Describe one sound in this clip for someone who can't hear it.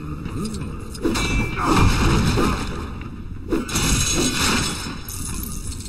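A burst of flame roars and crackles.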